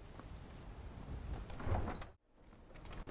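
A heavy wooden door swings open with a low thud.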